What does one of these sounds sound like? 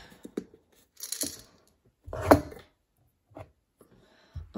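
Coins clink inside a glass jar as it is moved.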